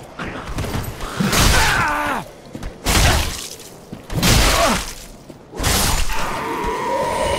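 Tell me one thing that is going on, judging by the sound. Heavy blows strike in a sword fight, several times.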